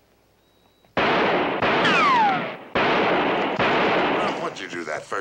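A gun fires loudly with a ringing echo.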